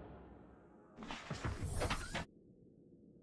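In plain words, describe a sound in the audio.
A small submersible's hatch opens with a mechanical whoosh.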